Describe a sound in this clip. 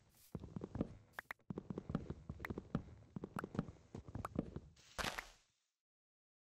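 Leafy blocks crunch and rustle as they are chopped apart.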